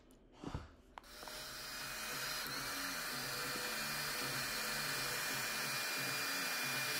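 A hair dryer blows with a steady roar, close by.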